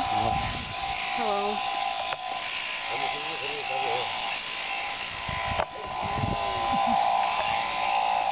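Hand shears snip through sheep's wool.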